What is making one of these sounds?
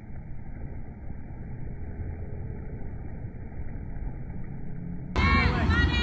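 A man runs splashing through shallow water.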